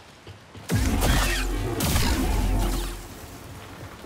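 Energy blades clash and crackle loudly.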